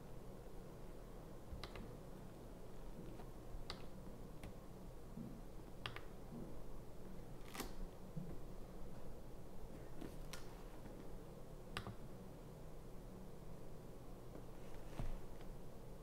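Fingertips tap the buttons of a digital scale, making short clicks.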